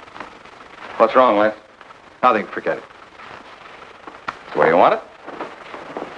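A man speaks loudly and sharply in short bursts.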